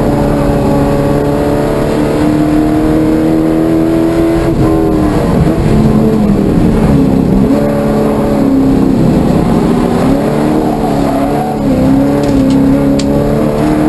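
A car engine roars loudly up close, revving and dropping as the gears change.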